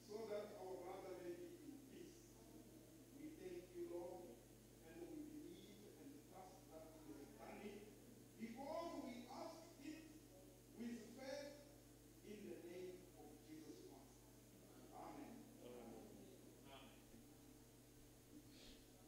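A man prays quietly, heard from a little distance in a reverberant room.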